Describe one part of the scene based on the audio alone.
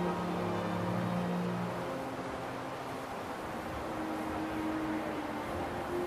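Calm ambient music plays steadily.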